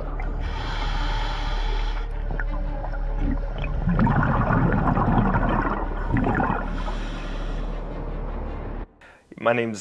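Air bubbles gurgle from a diver's breathing gear underwater.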